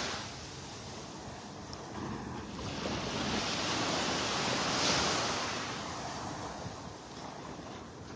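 Wind blows across the open beach.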